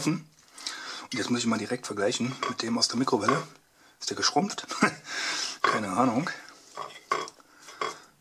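A fork scrapes and taps against a ceramic plate.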